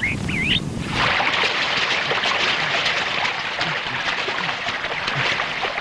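Water splashes as hands scoop it from a stream.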